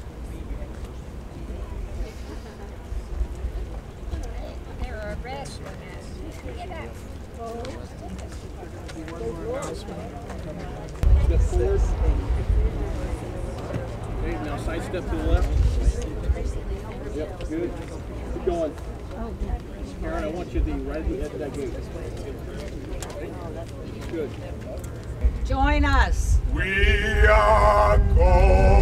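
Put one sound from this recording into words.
Several elderly men and women talk among themselves nearby, outdoors.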